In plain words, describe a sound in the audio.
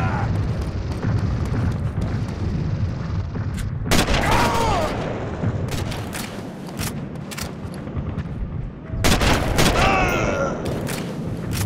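Footsteps run over stone pavement.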